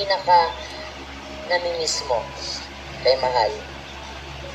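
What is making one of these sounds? A young woman speaks with animation into a microphone, heard through a television broadcast.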